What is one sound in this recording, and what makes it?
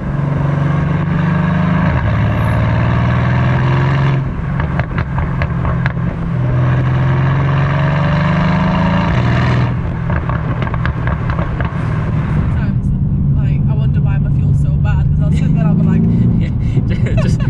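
A car engine drones loudly and rises and falls in pitch as it accelerates.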